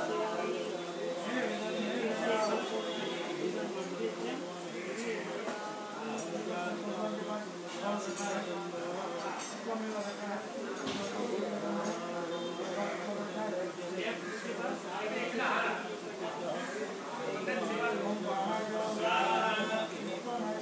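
A middle-aged man chants steadily and rhythmically nearby.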